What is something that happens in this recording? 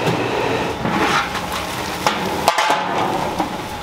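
A metal lid clanks.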